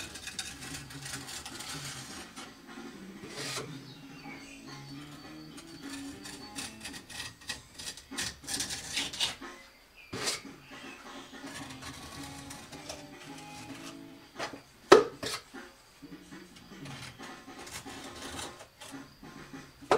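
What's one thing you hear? A trowel scrapes against a wall.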